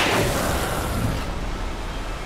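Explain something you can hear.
A loud burst of gunfire and a blast ring out at the start.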